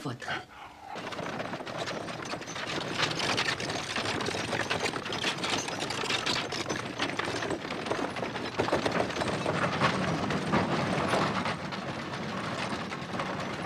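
Wooden cart wheels rumble and rattle on a road.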